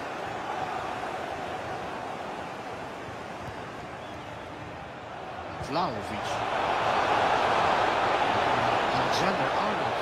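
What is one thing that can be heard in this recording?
A stadium crowd roars steadily and swells louder.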